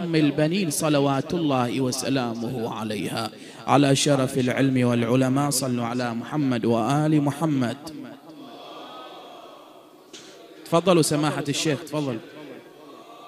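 A man speaks with feeling through a microphone, his voice echoing in a large hall.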